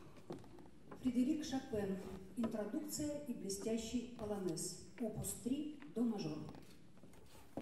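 A piano plays along.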